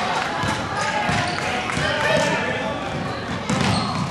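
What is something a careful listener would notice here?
A basketball bounces on a hard floor.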